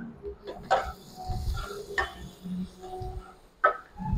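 A wooden spatula scrapes and stirs food in a metal pan.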